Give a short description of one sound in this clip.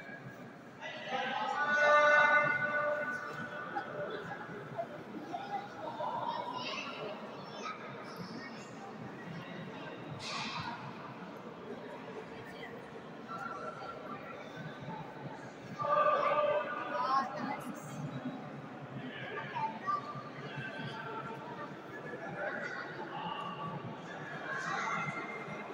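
A crowd of men and women murmurs and talks nearby, echoing in a large stone hall.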